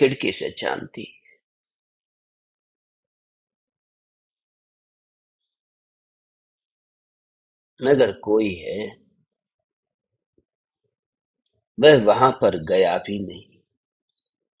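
A man speaks slowly and calmly into a close microphone, with long pauses.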